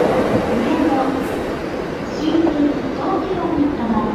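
A high-speed electric train approaches slowly.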